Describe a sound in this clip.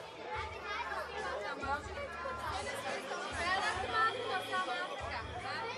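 Several women and children chatter and talk over one another nearby.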